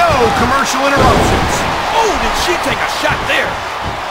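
A body slams onto a wrestling ring mat.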